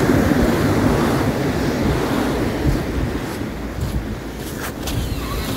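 Waves wash onto a beach nearby.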